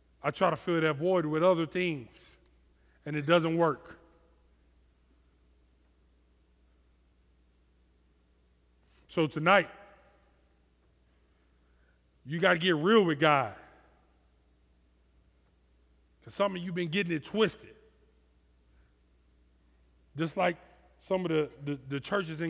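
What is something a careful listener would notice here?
A man speaks calmly through a headset microphone, with long pauses.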